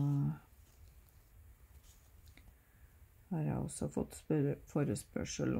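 A needle and thread rustle softly through cloth.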